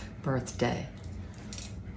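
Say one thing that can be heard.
An elderly woman laughs close by.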